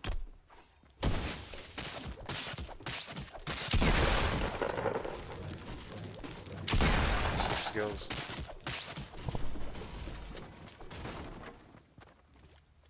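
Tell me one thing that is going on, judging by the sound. A pickaxe repeatedly smashes into wood and hay with loud crunching thuds.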